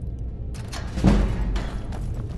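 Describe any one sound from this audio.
A lock clunks open with a heavy thud.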